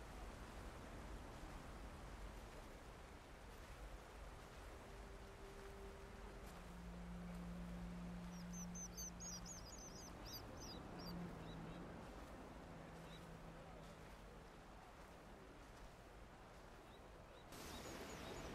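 Gentle waves wash onto a sandy shore.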